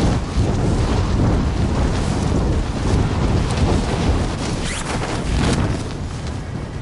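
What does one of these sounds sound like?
Wind rushes loudly past during a fast freefall dive.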